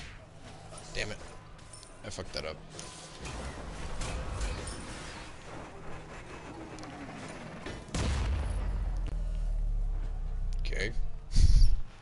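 Magic blasts and hits burst in a fight.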